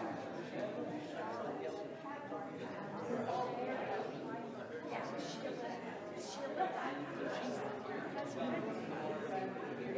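A woman laughs and talks with animation nearby.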